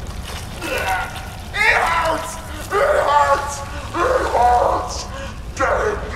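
A woman's voice in the game cries out in pain.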